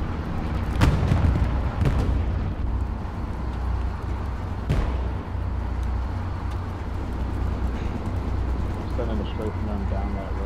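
A heavy engine rumbles low and steady.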